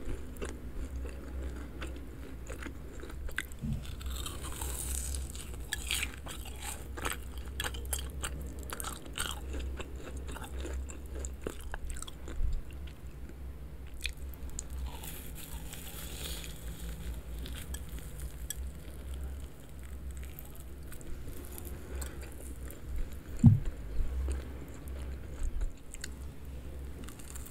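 Crunchy food crackles and crunches close to a microphone as a young woman chews.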